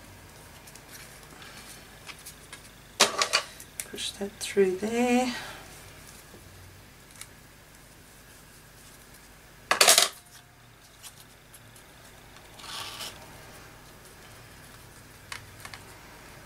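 A paper tag rustles as it is handled.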